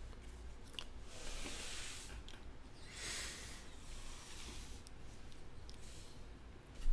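Stacks of cards slide and shuffle on a table.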